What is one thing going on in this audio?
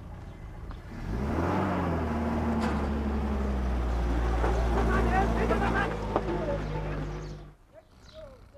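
A vehicle engine idles and rumbles.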